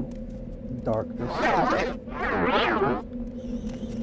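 A magic spell shimmers and whooshes.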